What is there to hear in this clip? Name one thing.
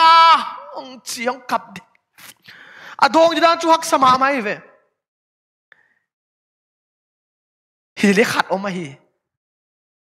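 A man speaks with animation into a microphone, with long pauses.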